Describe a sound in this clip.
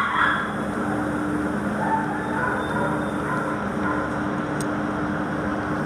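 A dog crunches dry kibble from a metal bowl.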